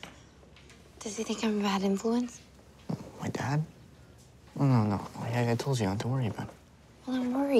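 A young man talks calmly nearby.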